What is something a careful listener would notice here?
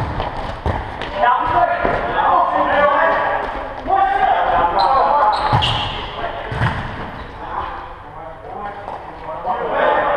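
Men shout in a large echoing hall.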